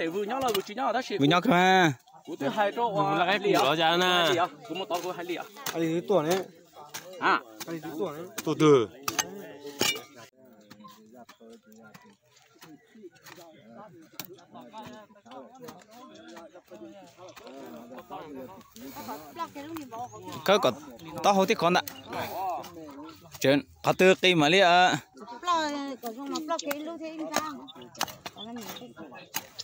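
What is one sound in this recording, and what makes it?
Hoes scrape and chop into dry soil.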